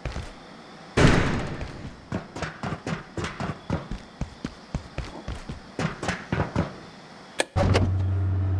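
Footsteps clank quickly on a metal floor.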